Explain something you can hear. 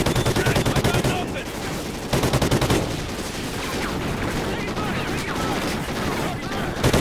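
A helicopter's rotor thumps steadily nearby.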